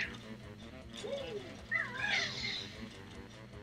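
A cartoon character's jump sound effect chirps in a video game.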